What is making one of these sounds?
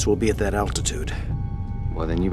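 A man speaks calmly through a headset radio.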